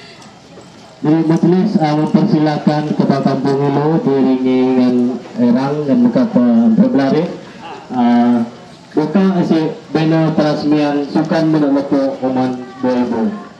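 A group of women sing together loudly, close by.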